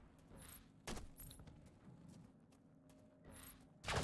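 A gun fires a few sharp shots.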